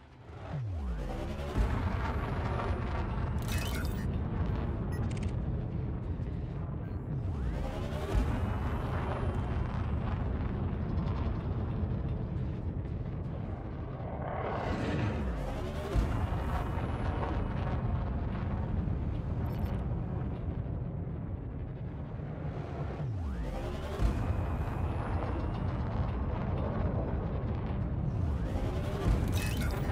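A spaceship engine hums low and steady.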